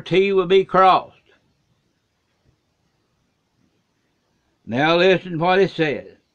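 An elderly man speaks calmly and close up, with pauses.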